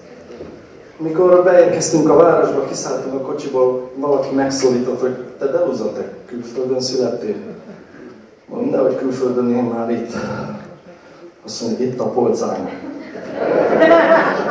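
A man sings into a microphone, amplified through loudspeakers.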